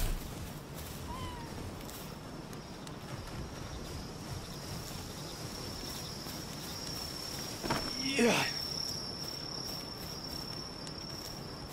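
A torch flame crackles and roars.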